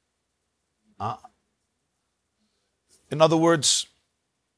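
A middle-aged man speaks calmly into a clip-on microphone, in short bursts with pauses.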